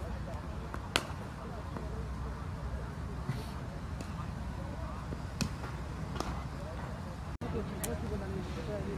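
A cricket ball cracks off a bat in the distance.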